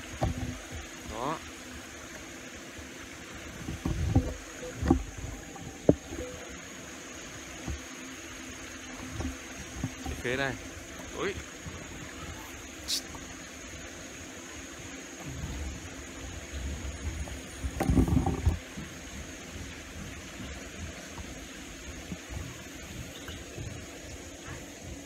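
A shallow stream trickles over rocks.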